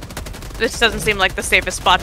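A machine gun fires a quick burst.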